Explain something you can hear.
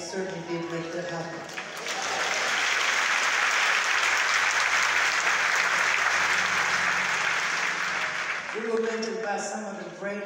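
A man sings through loudspeakers in a large echoing hall.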